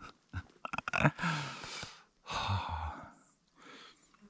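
A middle-aged man laughs breathily.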